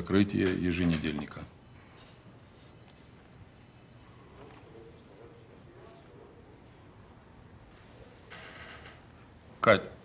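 A middle-aged man speaks firmly and forcefully, close by.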